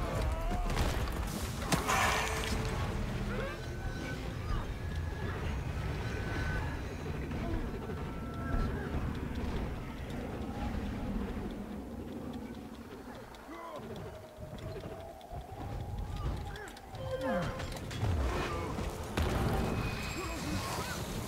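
Game spell effects whoosh, crackle and clash in a fight.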